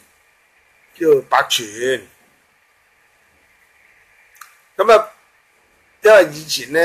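An elderly man speaks calmly and close to a microphone, in short bursts with pauses.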